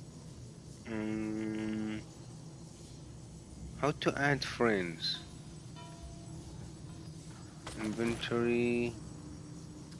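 Short menu chimes sound as the selection changes.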